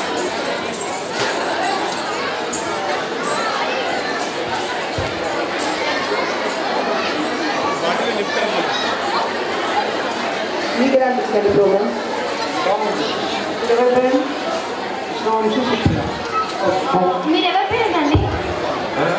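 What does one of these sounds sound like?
A large crowd of children and adults cheers and chatters loudly in an echoing hall.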